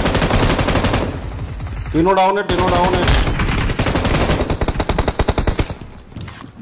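Gunshots rattle in rapid bursts.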